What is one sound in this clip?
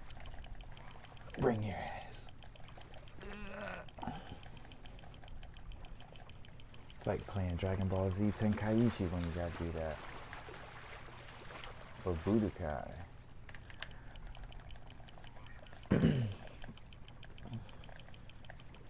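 A fishing reel clicks rapidly as the line is wound in.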